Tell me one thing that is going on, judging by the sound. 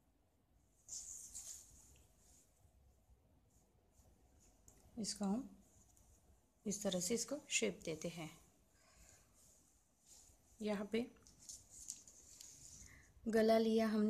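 Hands brush and rustle against fabric.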